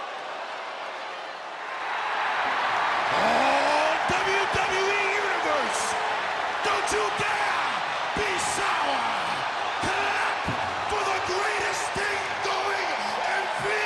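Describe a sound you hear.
A large crowd cheers and roars in a big echoing arena, growing louder.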